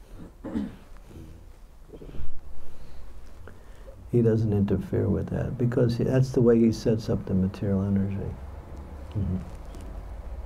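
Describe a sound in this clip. An elderly man speaks calmly into a microphone close by.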